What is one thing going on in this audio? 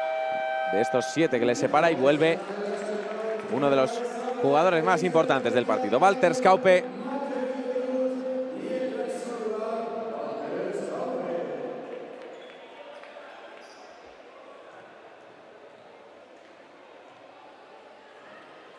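A crowd of spectators murmurs in an echoing hall.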